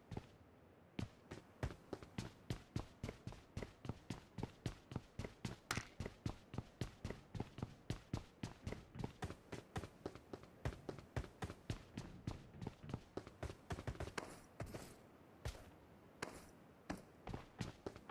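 Quick footsteps run steadily over hard ground.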